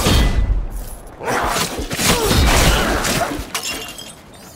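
Swords clash and blows land in a fast fight.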